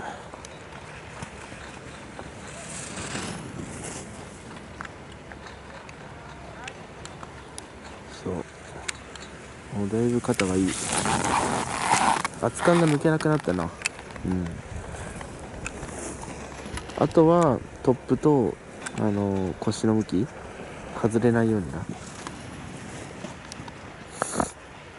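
Skis scrape and hiss across hard snow.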